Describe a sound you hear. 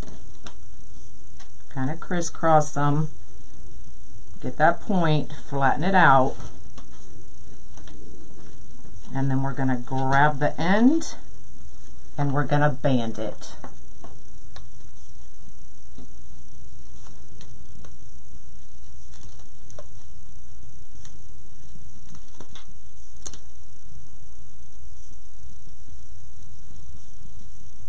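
Stiff mesh fabric rustles softly as hands fold it.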